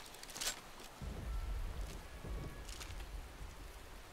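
A large creature growls with a deep rumble.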